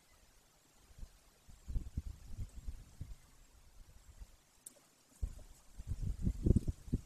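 A large bird tears and rustles at its prey close by.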